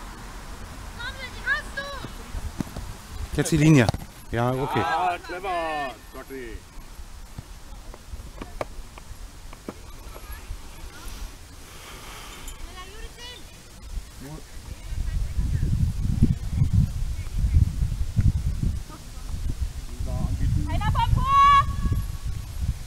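Young women call out to each other outdoors.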